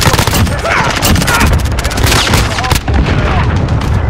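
An assault rifle fires.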